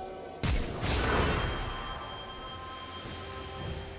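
Magic spell blasts whoosh and crackle.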